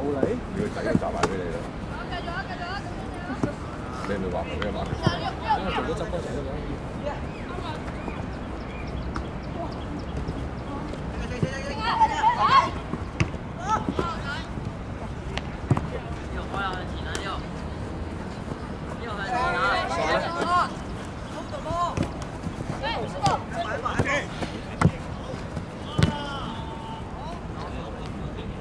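Young boys shout and call out across an open field outdoors.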